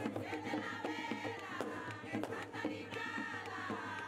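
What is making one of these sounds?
Hand drums beat along with the singing.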